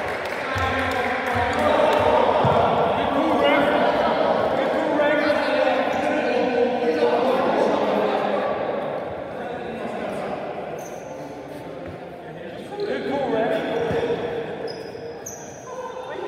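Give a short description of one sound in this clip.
Men shout and call out in a large echoing hall.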